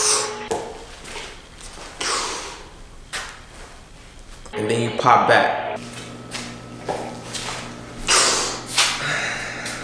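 A man exhales puffs of vapour with soft breathy whooshes.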